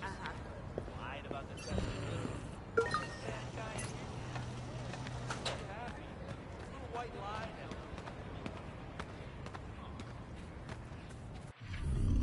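Footsteps tap along a paved path.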